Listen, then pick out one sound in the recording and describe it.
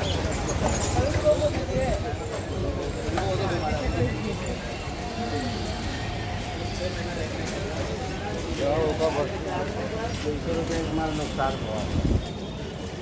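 Sandals slap on the pavement with footsteps.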